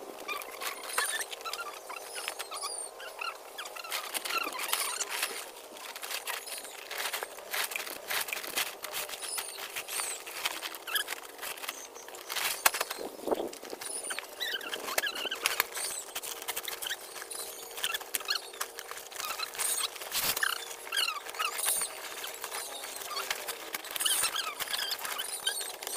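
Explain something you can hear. Dry twigs and leaves crackle as they are stuffed into a sack.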